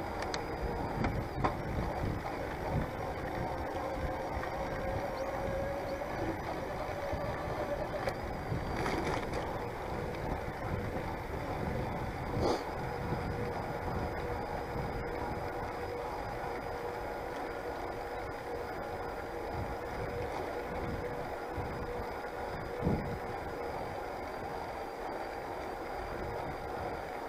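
A bicycle rolls along a rough path with a steady rumble.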